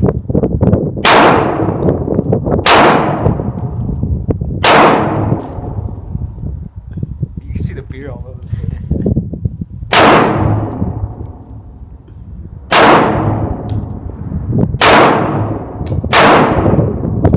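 A handgun fires single sharp shots outdoors, each with a short rolling echo.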